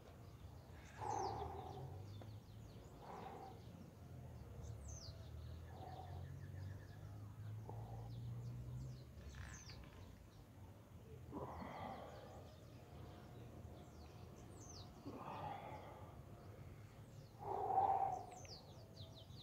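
A man exhales sharply with effort, close by.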